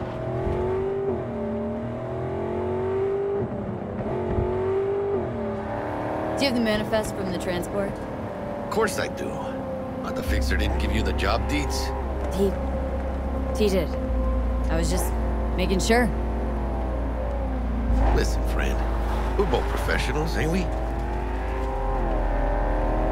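A car engine hums and revs steadily while driving.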